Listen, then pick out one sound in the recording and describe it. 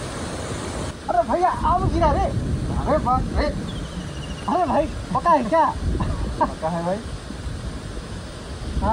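A young man speaks with animation nearby.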